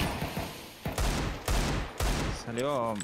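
A pistol fires loud shots.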